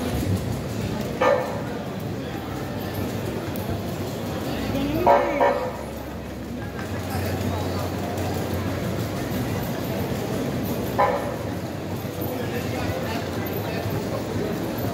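A crowd of pedestrians murmurs and chatters on a busy street outdoors.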